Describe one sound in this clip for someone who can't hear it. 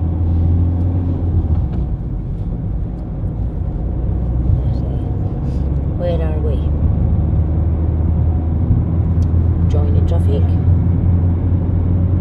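A car engine hums steadily with road rumble.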